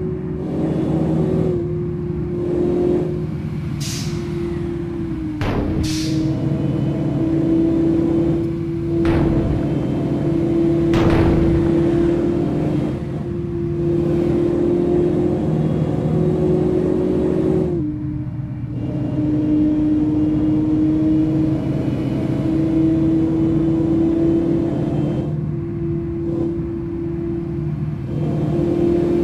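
A car engine hums steadily at high speed, shifting pitch as it changes gear.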